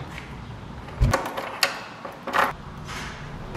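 A door lock rattles and turns with a key.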